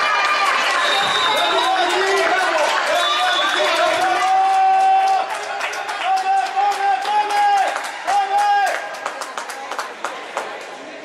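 A crowd cheers loudly in an echoing hall.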